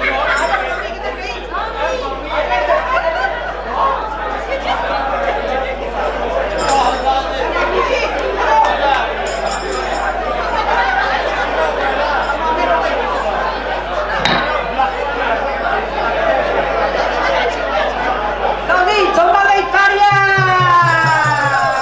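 Many men and women chatter and talk at once.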